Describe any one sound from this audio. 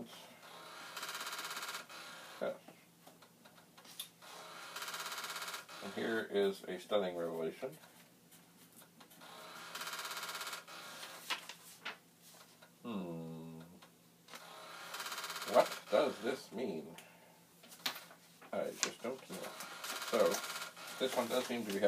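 A disk drive whirs and buzzes in short bursts.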